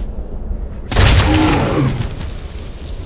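A large beast growls as it falls.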